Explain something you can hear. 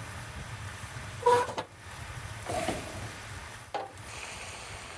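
A metal stove door clanks open and shut.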